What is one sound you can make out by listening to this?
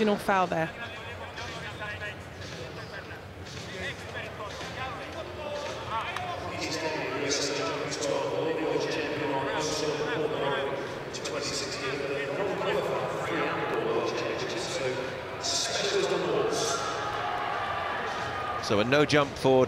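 A large indoor crowd cheers and claps, echoing around a big hall.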